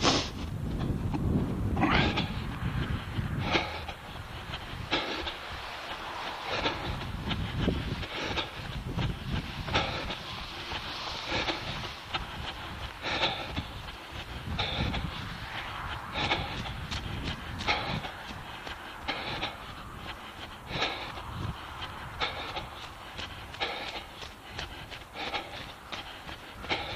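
Footsteps crunch on snow at a steady pace.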